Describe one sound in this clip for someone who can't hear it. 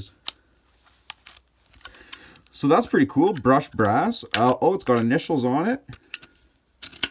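Small metal cases clink and tap together in hands.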